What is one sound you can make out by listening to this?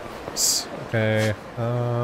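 Footsteps tap on hard pavement.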